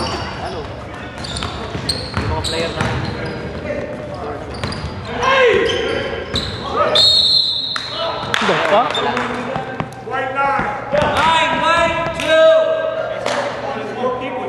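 Young men shout and call out to each other across a large echoing gym.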